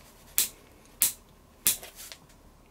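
Small metal parts click sharply as they are handled.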